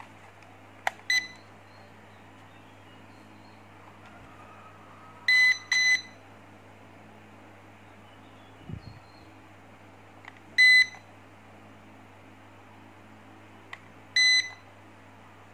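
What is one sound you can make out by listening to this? A remote controller beeps in short, high electronic tones.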